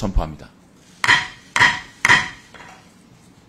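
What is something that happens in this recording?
A wooden gavel bangs three times on a desk.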